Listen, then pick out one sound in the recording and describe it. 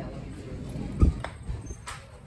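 A glass door bangs as it swings.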